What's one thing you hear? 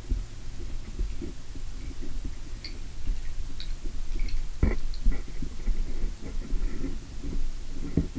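Water rumbles and gurgles underwater, close by.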